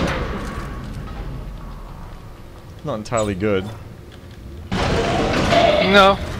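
Heavy armoured footsteps clank on a metal floor.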